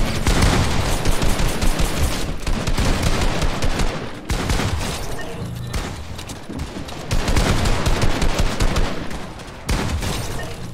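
Gunshots from a game fire in rapid bursts.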